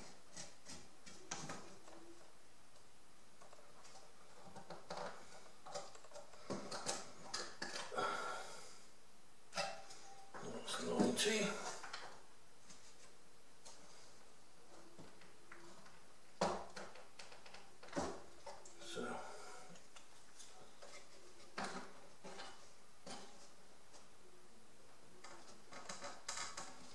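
Thin wooden strips tap and click against a work surface.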